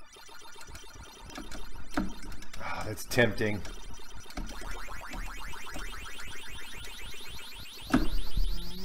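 Ms. Pac-Man arcade game sound effects chirp and warble.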